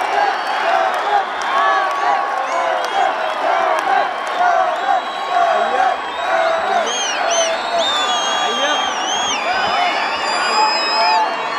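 A large crowd sings along loudly and cheers in an open-air venue.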